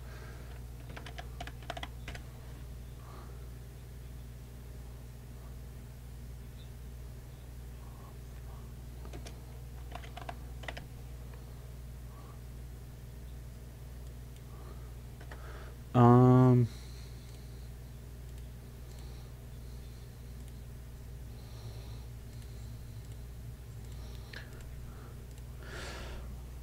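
A man speaks briefly and casually into a close microphone, now and then.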